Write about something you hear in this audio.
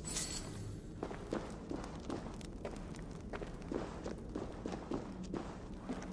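Footsteps crunch on a stone floor at a steady walking pace.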